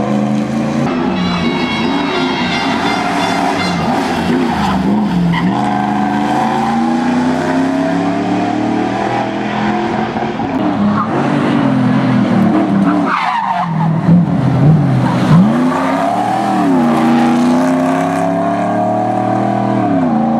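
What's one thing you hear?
A rally car engine roars loudly, revving up and down.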